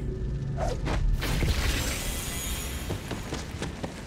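Gunfire and blasts boom from a video game.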